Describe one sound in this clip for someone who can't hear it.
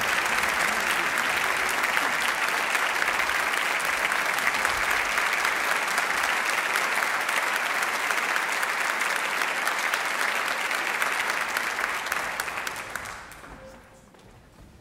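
An audience applauds loudly in a large hall, and the applause dies away.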